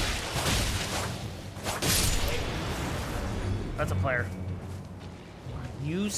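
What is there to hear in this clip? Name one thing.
Swords clash and slash with metallic strikes.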